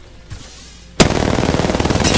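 A rifle fires a rapid burst of shots close by.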